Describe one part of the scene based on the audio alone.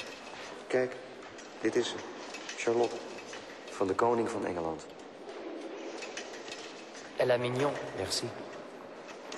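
Two young men talk quietly with each other, close by.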